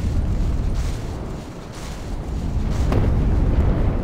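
Footsteps thud on wooden planks and gravel.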